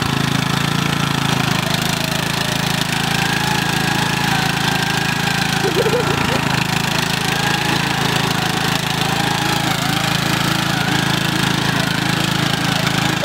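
Riding lawn mower tyres spin and churn through mud.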